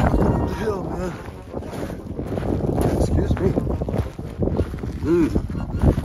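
An elderly man talks calmly close to the microphone.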